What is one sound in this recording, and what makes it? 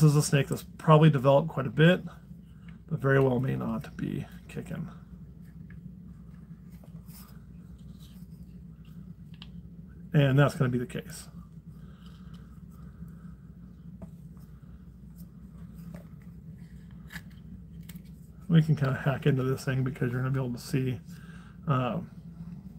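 Small scissors snip softly through a leathery eggshell.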